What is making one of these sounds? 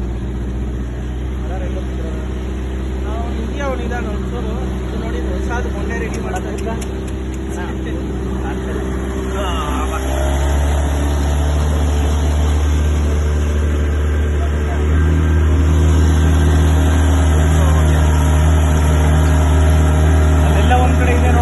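An outboard motor drones steadily and grows louder.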